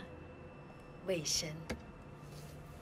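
A woman speaks coldly, close by.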